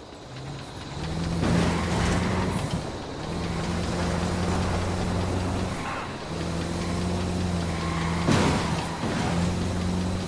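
A large truck engine roars steadily.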